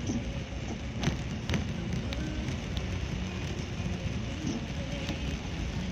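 Heavy rain drums on a car's windscreen and roof.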